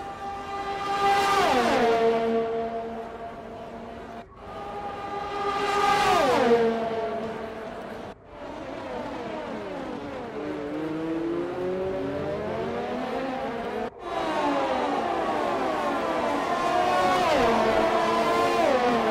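Racing car engines whine at high revs and roar past, shifting gears.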